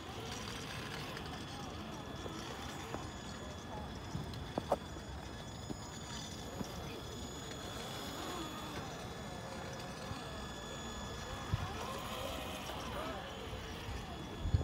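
A small electric motor whines steadily as a toy truck crawls over rocks.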